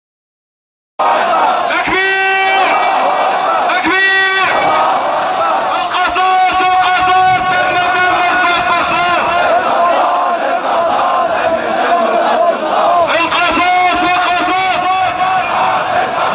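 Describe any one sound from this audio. A large crowd chants loudly outdoors.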